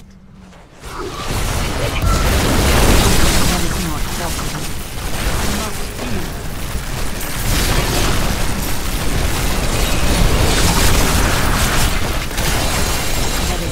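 Magic blasts and clashes of battle crackle and roar loudly and densely.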